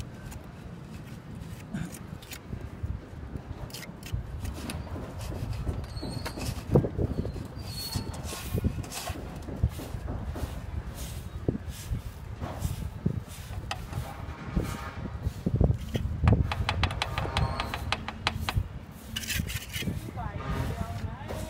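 A trowel scrapes and smooths wet cement.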